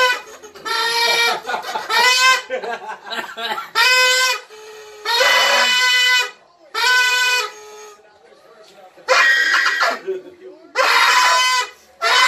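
A man blows a party horn in loud, honking bursts.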